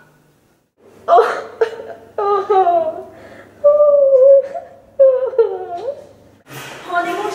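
A young woman sobs.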